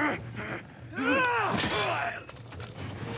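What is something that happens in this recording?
A heavy blunt blow thuds into a body.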